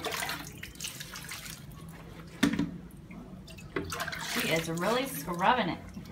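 Water splashes as it is poured from a bowl onto a washboard.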